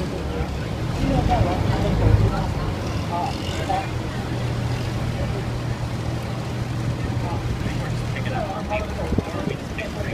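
A boat engine drones nearby.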